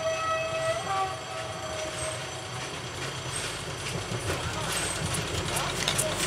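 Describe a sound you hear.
A steam locomotive chuffs as it approaches.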